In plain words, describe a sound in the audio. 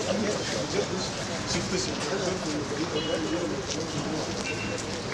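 Several men talk together outdoors nearby.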